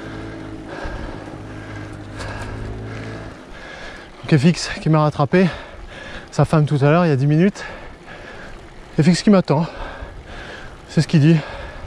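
Bicycle tyres roll and hum on the road.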